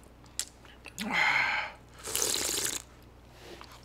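A man slurps soba noodles up close.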